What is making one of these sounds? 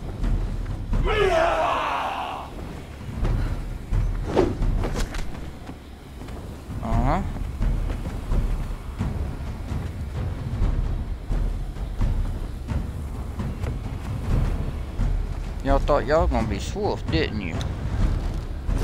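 A man talks casually into a microphone, heard close.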